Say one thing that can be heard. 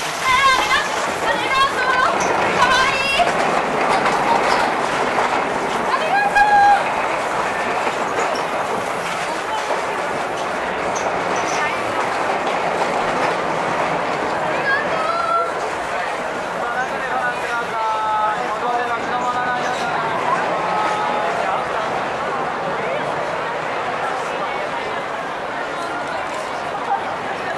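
A crowd of people chatters in a busy street.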